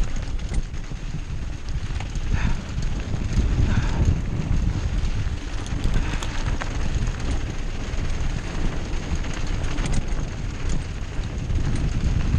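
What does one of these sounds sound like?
Mountain bike tyres crunch over a dirt and gravel trail.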